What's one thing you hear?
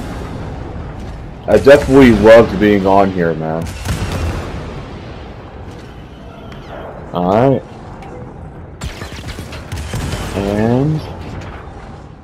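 Laser blasts crack and zap in bursts.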